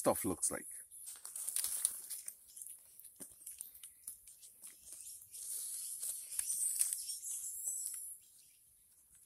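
Dry soil and grit trickle and rustle through fingers.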